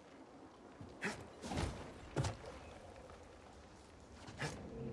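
Footsteps thud on stone.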